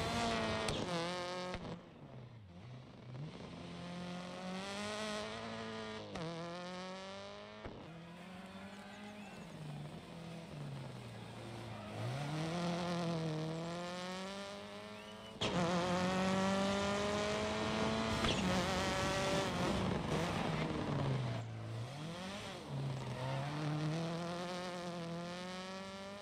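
A rally car engine revs hard, rising and dropping through gear changes.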